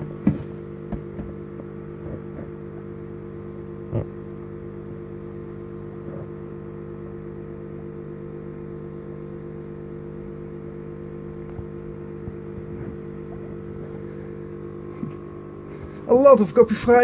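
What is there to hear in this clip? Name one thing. Water churns and bubbles steadily from an aquarium filter outlet.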